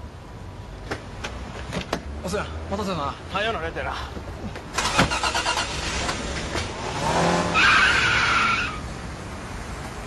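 A young woman speaks excitedly.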